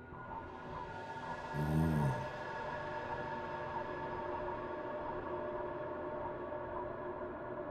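A spacecraft's thrusters hum steadily.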